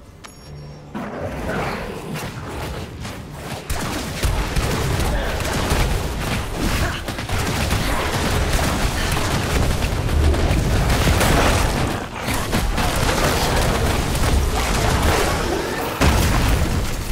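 Magic spells crackle and blast during a loud fight.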